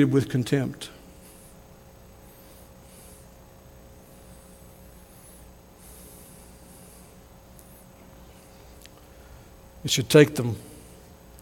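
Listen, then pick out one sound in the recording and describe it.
A man speaks through a microphone in a calm, measured voice, with long pauses.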